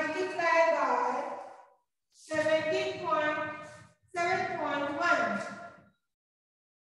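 A woman speaks clearly and steadily, close by, in pauses.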